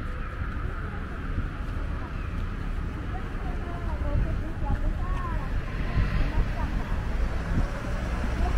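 Young children chatter softly nearby.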